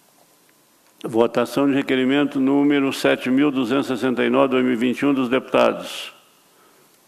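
An elderly man reads out through a microphone in a steady voice.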